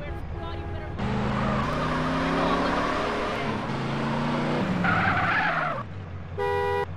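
Car tyres screech as the car skids.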